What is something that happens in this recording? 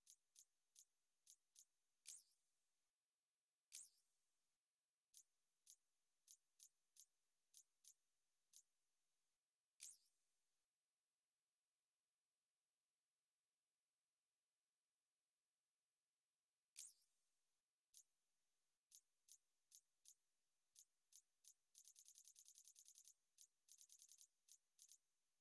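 Short electronic menu clicks tick one after another, sometimes in quick bursts.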